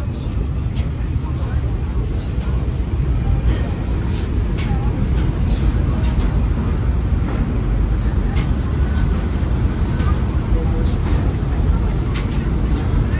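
Clicks and clatter come from inside a busy bakery.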